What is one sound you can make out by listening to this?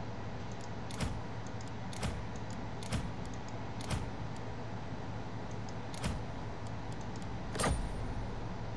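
Short interface clicks sound now and then.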